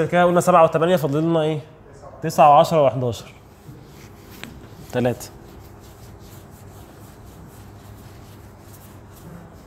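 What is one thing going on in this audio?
A marker scratches and taps on a whiteboard.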